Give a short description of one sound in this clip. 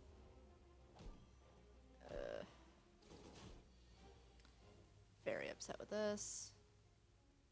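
Video game sound effects thump and whoosh as cards are played and attacks land.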